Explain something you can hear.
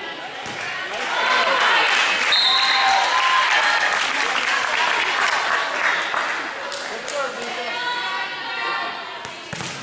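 Young girls shout and cheer in a large echoing gym.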